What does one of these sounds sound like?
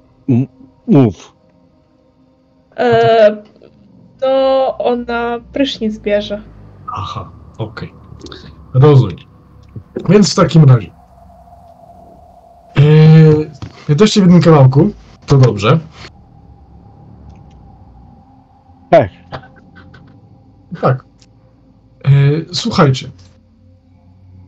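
A woman talks over an online call.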